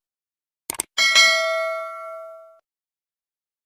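A bell chimes once and rings out.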